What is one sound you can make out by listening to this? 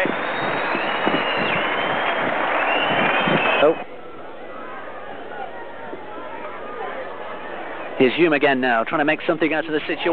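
A large crowd roars loudly outdoors, then settles to a low murmur.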